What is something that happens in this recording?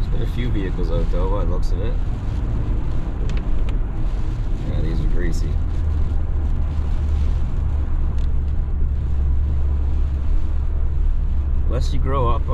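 Tyres roll and hiss over a wet, slushy road.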